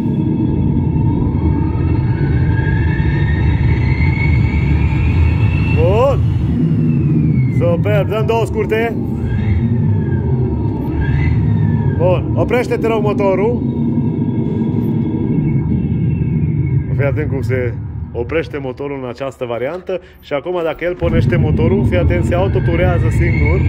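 A car engine rumbles deeply from the exhaust, close by.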